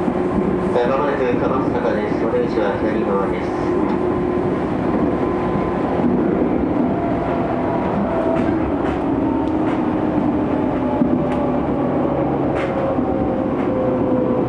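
The traction motors of an electric commuter train whine as it runs.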